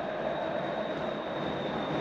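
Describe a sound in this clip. A ball bounces on a hard indoor floor.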